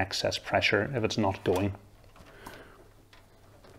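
A cable plug clicks into a socket.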